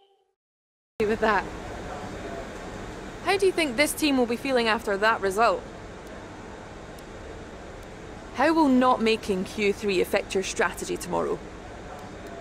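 A young woman speaks brightly, as if into a microphone.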